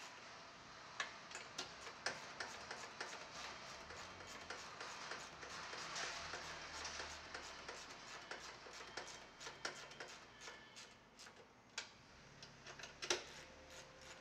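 Metal parts clink and tap against each other.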